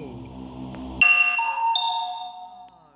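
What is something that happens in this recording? A loud game alarm blares for an emergency meeting.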